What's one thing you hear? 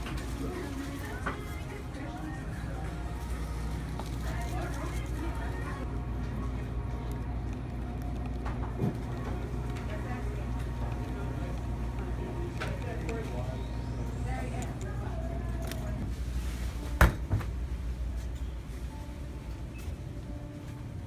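A refrigerator hums steadily.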